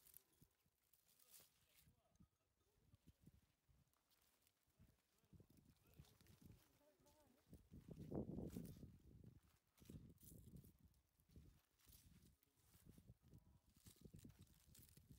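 Leafy vines rustle and snap as melons are pulled from them.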